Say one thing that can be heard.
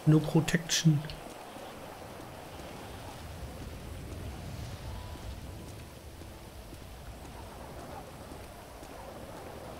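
Footsteps tap on pavement as a man walks.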